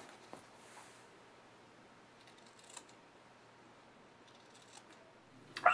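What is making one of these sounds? Scissors snip through paper and padding.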